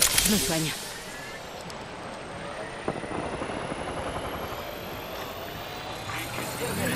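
A video game's healing device hums and charges with a rising whine.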